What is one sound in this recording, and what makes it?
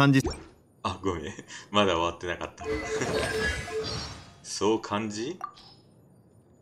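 A young voice speaks with animation close to a microphone.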